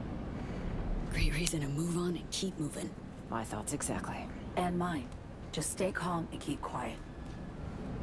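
A young woman speaks quietly and calmly nearby.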